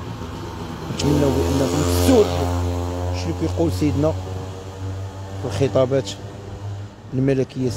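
A motorbike engine hums as it passes along the street.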